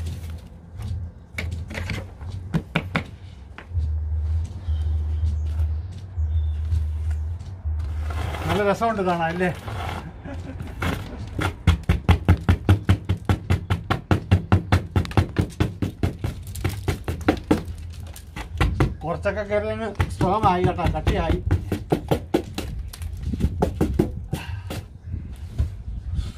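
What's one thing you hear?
A plastic ice scraper scrapes snow off a car.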